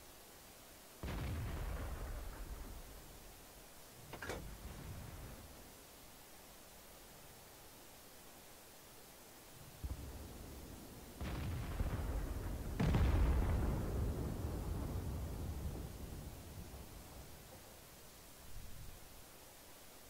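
Heavy guns fire with loud booms that roll away slowly.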